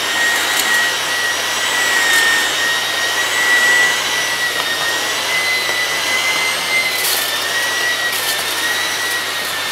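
Small bits of debris rattle up into a vacuum cleaner.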